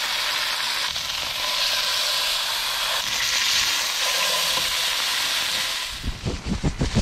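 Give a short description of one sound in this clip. Meat sizzles loudly in a hot frying pan.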